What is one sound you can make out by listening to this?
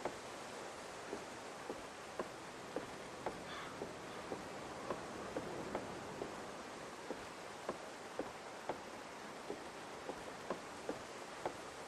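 Footsteps thud on wooden boards at a steady walking pace.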